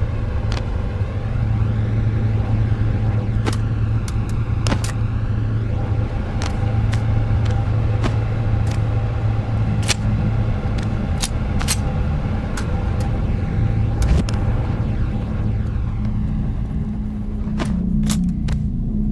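Metal gun parts click and clack.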